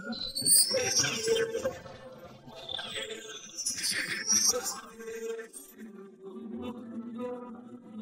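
A woman speaks with animation in a high, childlike cartoon voice.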